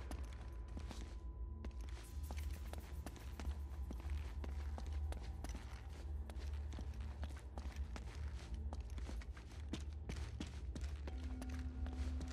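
Footsteps run and walk on a stone floor.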